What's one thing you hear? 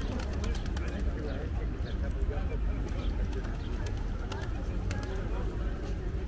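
Many voices of people chatter in the distance.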